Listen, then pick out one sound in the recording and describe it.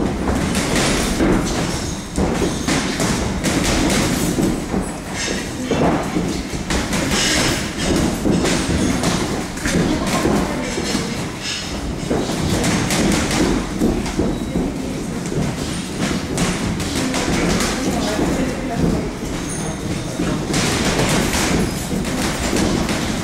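Boxing gloves thud against padded mitts in quick bursts.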